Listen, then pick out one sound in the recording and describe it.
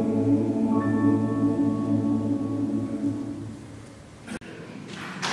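A large male choir sings in a large echoing hall and holds a final chord.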